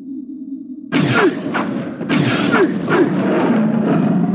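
A blade slashes and strikes in a close fight.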